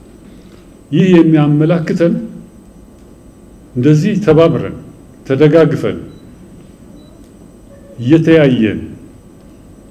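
An elderly man speaks slowly and deliberately into a microphone, in short phrases with pauses.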